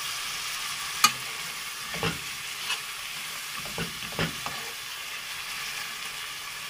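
A metal spoon scrapes and clinks against a pot while stirring.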